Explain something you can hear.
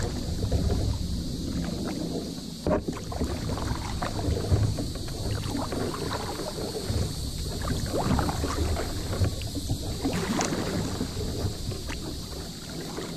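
Water laps and splashes against a kayak hull.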